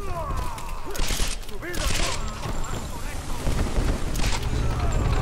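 Gunshots crack in a short burst.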